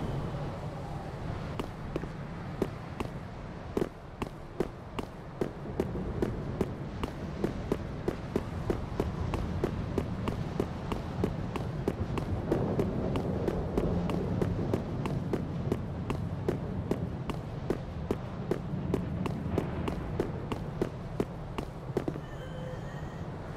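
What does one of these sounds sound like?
Armoured footsteps run quickly over stone.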